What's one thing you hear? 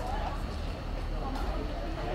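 Men and women talk in the distance outdoors.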